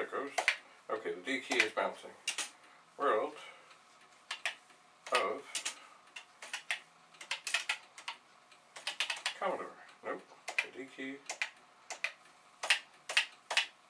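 Computer keys clack under quick typing, close by.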